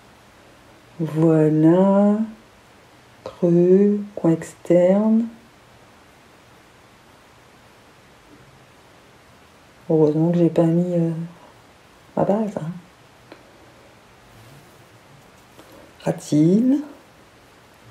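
A woman speaks calmly and close to a microphone, in short phrases.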